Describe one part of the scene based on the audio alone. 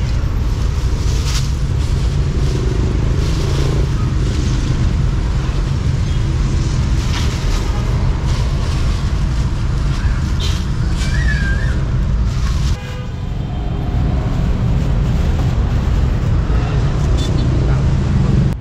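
Street traffic and motorbikes hum steadily outdoors.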